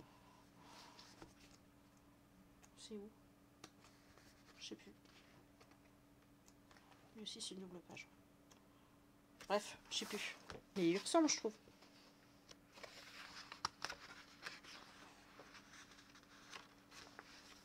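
Paper pages rustle and flip.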